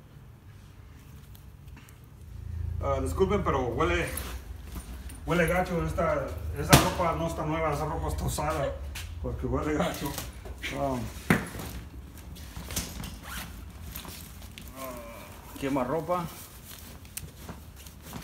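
Clothes rustle as they are packed into a bag.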